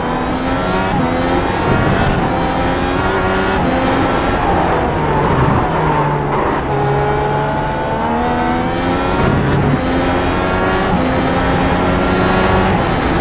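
A racing car engine screams at high revs, rising through each gear and dropping sharply with every shift.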